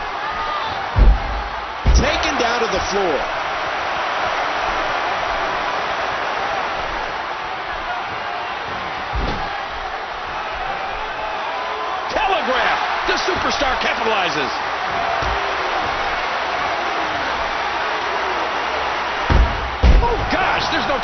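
Bodies slam hard onto a wrestling ring mat with loud thuds.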